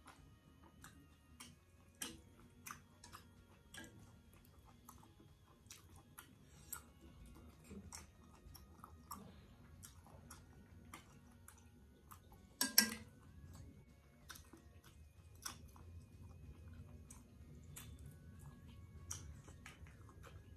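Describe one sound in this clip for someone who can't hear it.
Chopsticks click against a metal pot.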